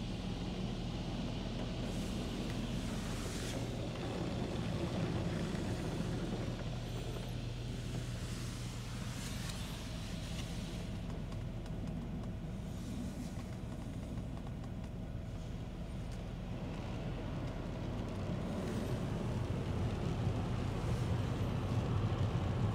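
Water sprays and splashes against a car windshield.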